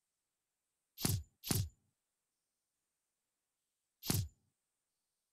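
Short electronic menu sounds blip a few times.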